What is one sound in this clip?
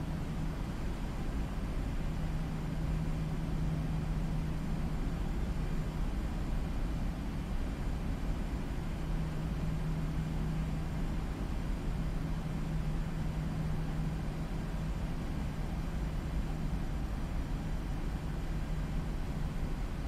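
Jet engines hum and rumble steadily as an airliner taxis.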